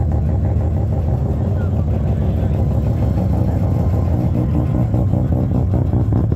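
An old car's engine rumbles loudly as it drives slowly past close by.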